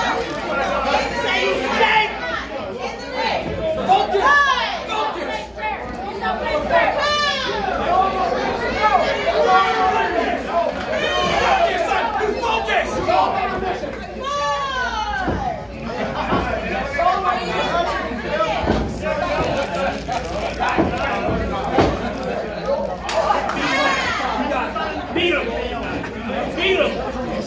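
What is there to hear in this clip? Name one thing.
A man shouts loudly at the crowd.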